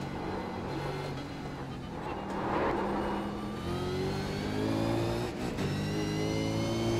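A racing car engine roars, revving up and shifting through the gears.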